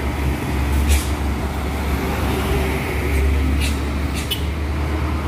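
A heavy truck engine rumbles as the truck drives slowly uphill.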